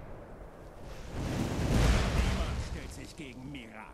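Footsteps crunch through dry grass and over rocky ground.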